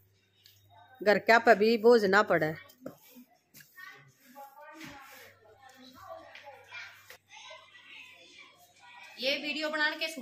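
A broom sweeps across a hard floor with soft scratchy strokes.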